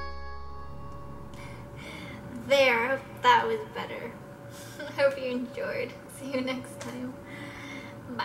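A young woman laughs softly.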